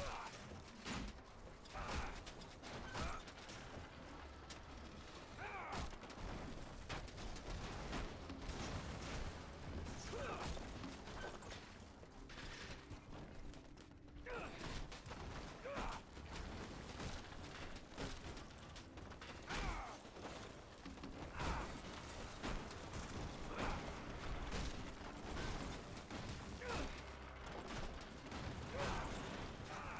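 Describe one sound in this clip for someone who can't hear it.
Heavy metal structures crash and clang as they are smashed apart.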